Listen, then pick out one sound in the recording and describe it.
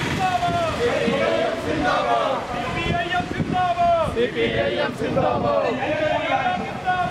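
A crowd of men chants slogans loudly outdoors.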